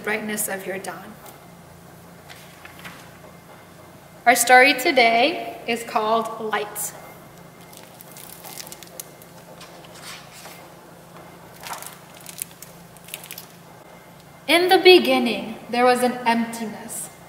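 A young woman reads aloud calmly and clearly, close to a microphone.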